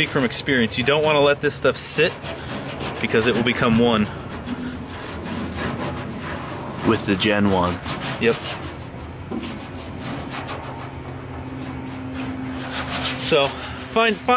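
A hand pats a car's body panel.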